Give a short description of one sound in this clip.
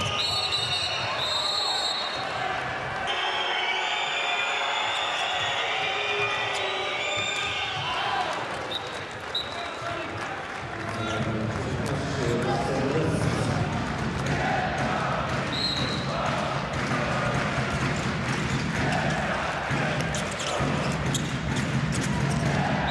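A large crowd cheers and chants loudly in a big echoing hall.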